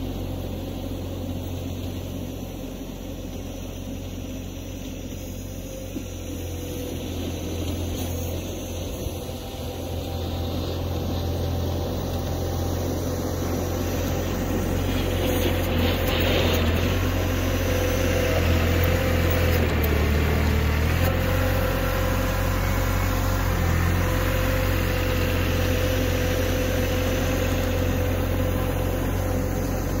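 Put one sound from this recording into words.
A tractor engine rumbles steadily, growing louder as it comes closer.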